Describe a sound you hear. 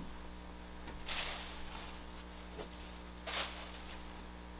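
Plastic sheeting rustles loudly.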